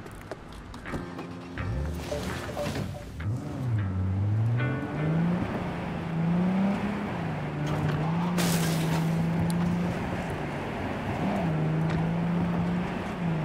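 A car engine starts and revs as the car drives off.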